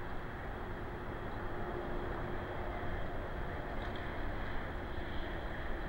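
Calm water laps softly.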